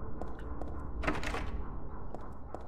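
A door handle rattles against a locked door.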